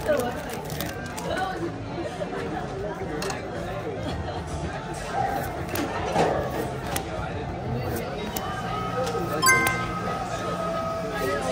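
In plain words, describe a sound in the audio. Playing cards rustle as they are shuffled.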